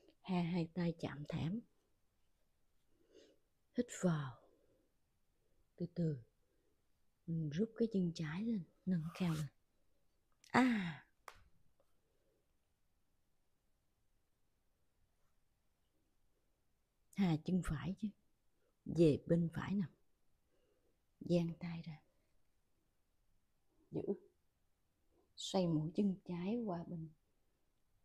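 A woman speaks calmly and clearly, close to a microphone, in short phrases with pauses.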